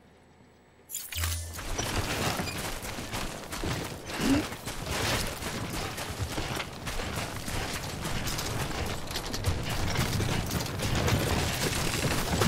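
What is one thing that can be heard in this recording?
Footsteps crunch on loose rocky ground.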